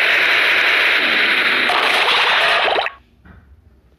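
A bomb explodes with a loud blast.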